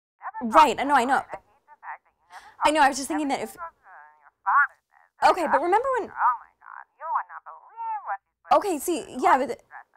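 A young woman talks on the phone with animation, close by.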